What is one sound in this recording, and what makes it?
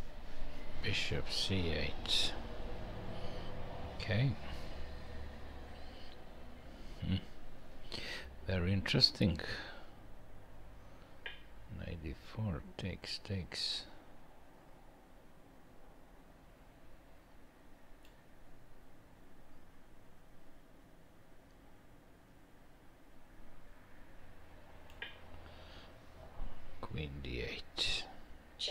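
A middle-aged man speaks calmly and thoughtfully into a headset microphone, with pauses.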